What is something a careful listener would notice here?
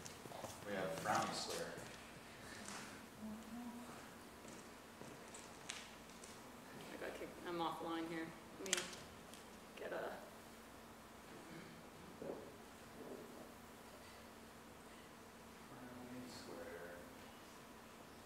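A man speaks briefly into a microphone in a large echoing hall.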